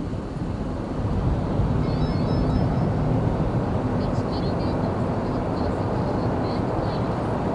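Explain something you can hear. Traffic noise grows louder and echoes inside a tunnel.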